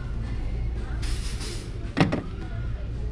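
A light wooden table is tipped and set back down with a knock.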